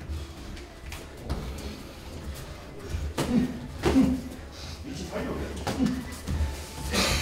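Sneakers squeak and shuffle on a mat floor.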